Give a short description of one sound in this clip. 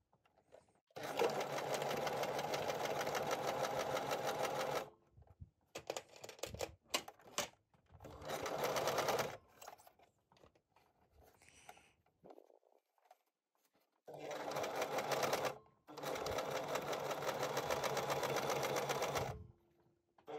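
A sewing machine runs in fast bursts, its needle stitching rapidly.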